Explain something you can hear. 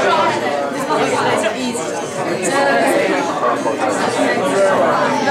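An acoustic guitar is strummed steadily.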